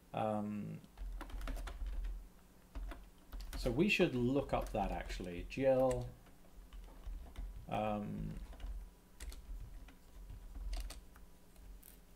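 Keys on a computer keyboard click as a man types.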